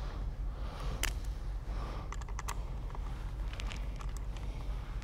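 Metal parts click and clink as they are fitted together by hand.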